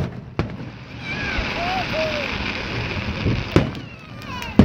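Fireworks crackle after bursting.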